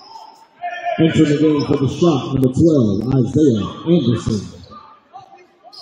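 Spectators shout and cheer in an echoing gym.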